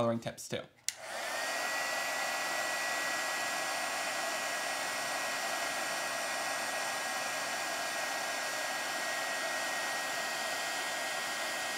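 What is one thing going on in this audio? A heat gun blows with a steady, loud whoosh and a high hum.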